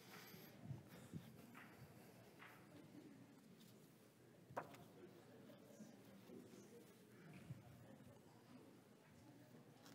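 Men and women murmur and greet each other quietly in a large echoing hall.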